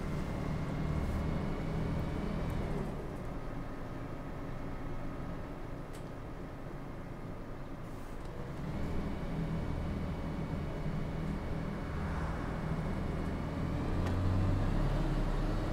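A bus engine hums and drones steadily, rising and falling as it speeds up and slows down.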